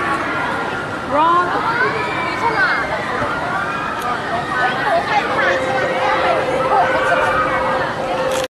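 A crowd of men and women chatters and calls out nearby, outdoors.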